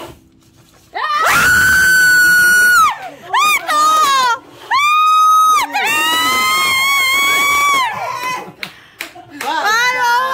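A woman shrieks with high, drawn-out laughter close by.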